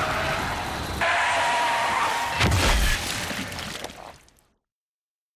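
A truck rumbles past.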